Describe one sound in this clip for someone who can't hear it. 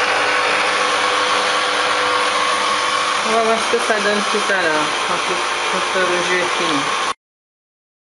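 A juicer motor hums steadily.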